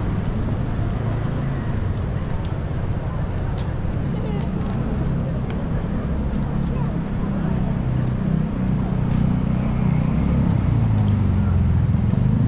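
City traffic rumbles steadily nearby.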